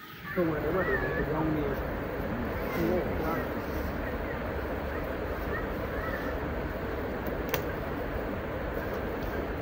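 Leaves and branches rustle as a man pulls at the undergrowth.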